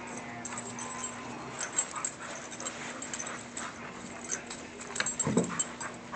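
Dogs growl and scuffle while wrestling playfully.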